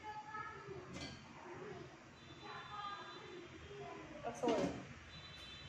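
A metal pot lid clanks as it is lifted and set back.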